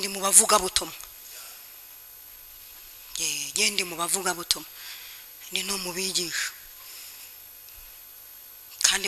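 A woman speaks slowly and deliberately into a microphone, with pauses.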